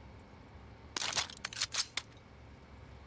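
Short metallic clicks sound as items are picked up.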